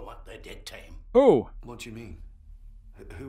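A man speaks in a gruff voice.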